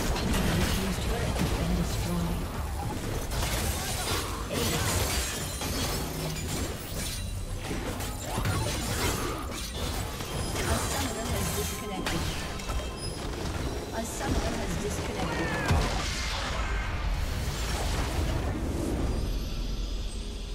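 Game spells blast and crackle in a busy fight.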